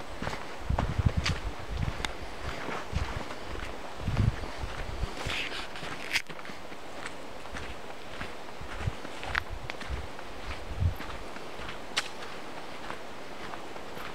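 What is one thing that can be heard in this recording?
Wind gusts through the trees outdoors.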